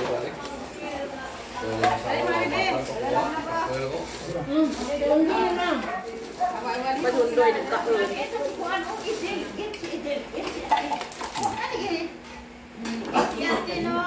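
Several adults talk and chat nearby.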